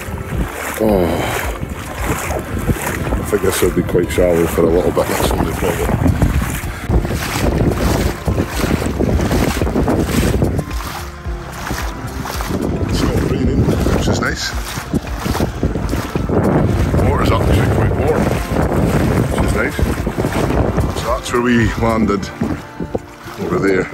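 A man talks with animation outdoors in wind.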